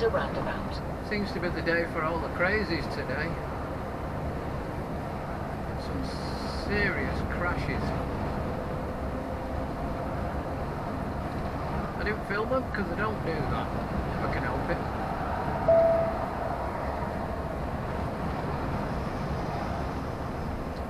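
A bus engine hums steadily while driving along a road.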